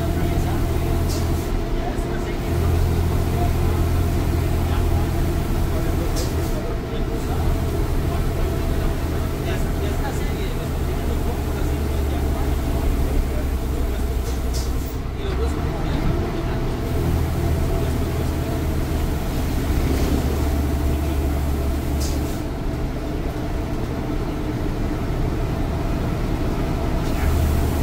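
A bus engine drones loudly and steadily, changing pitch as it climbs and shifts gears.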